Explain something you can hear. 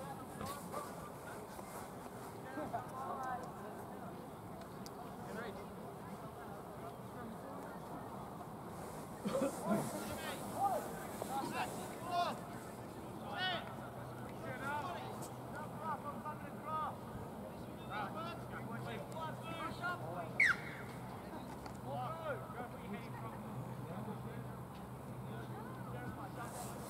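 Young girls shout and call out to each other outdoors at a distance.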